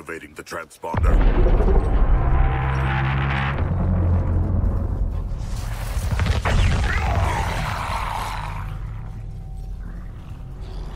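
A deep rumbling roar builds and swells.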